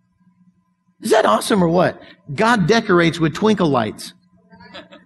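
An elderly man speaks with animation through a microphone in a large echoing hall.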